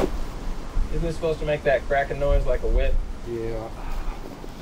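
A man speaks nearby.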